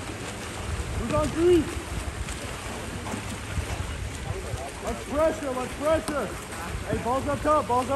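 Young players shout loudly across an outdoor pool.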